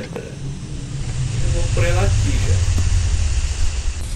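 A plume of dust hisses and rumbles up from the ground.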